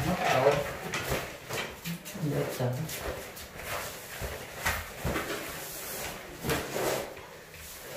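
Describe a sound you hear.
A rolled mat thuds and rustles as it is rolled up on the floor.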